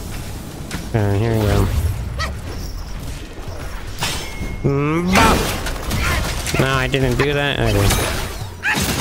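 A huge beast roars deeply.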